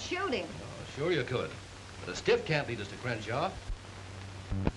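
A man answers calmly, nearby.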